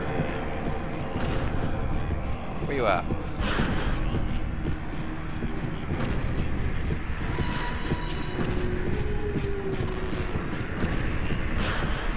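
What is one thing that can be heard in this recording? Footsteps pad across a carpet.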